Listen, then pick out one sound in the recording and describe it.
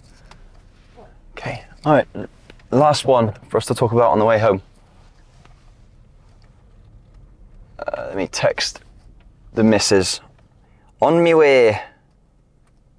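A young man talks with animation, close by in a quiet car.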